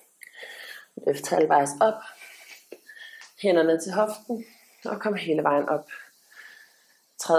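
A woman speaks calmly and clearly, giving instructions close by.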